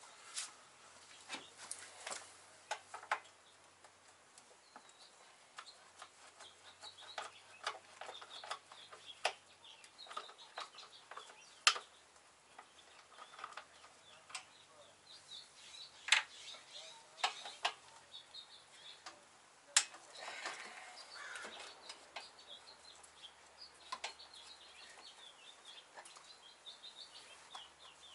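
Metal tools clink and knock against engine parts.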